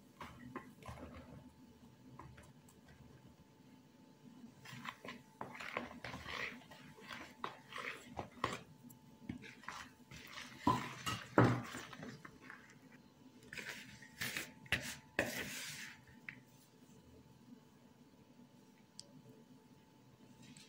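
A metal spoon taps against the rim of a plastic bowl.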